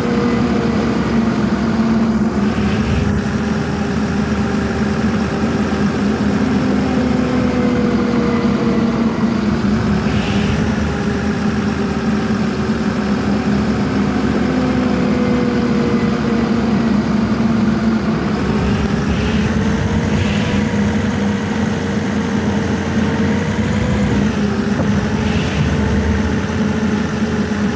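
A bus engine hums steadily, its pitch rising and falling as it drives.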